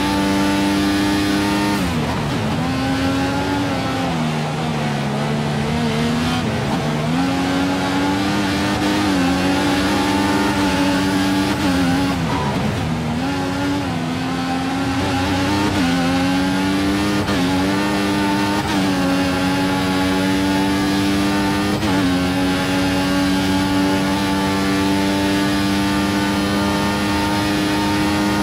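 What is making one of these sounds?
A racing car engine screams, dropping in pitch when braking into corners and climbing through gear changes.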